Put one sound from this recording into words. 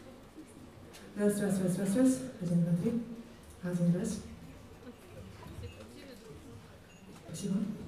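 A band with horns plays softly behind the singing.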